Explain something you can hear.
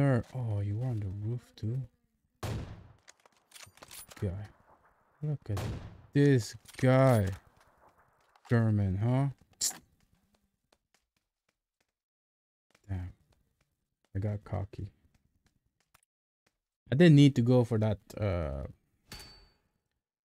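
A man talks with animation into a close microphone, in bursts with pauses.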